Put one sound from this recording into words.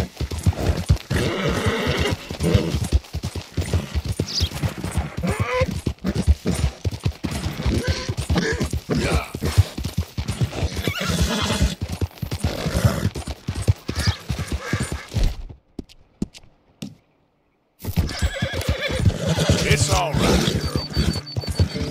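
A horse's hooves clop steadily along a dirt trail.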